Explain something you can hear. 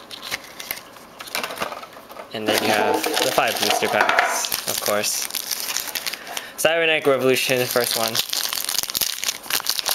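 Foil card packs crinkle as hands handle them.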